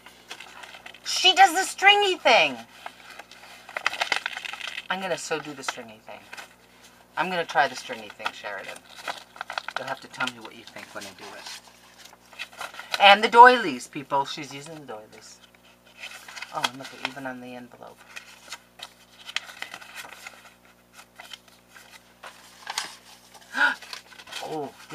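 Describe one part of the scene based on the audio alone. Paper rustles as cards are handled.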